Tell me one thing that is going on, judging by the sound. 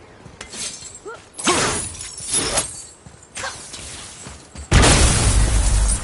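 Heavy footsteps crunch on snow.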